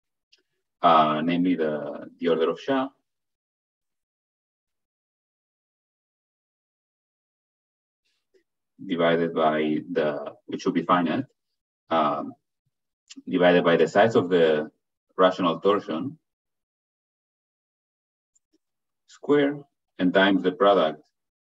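A man lectures calmly through an online call, pausing between phrases.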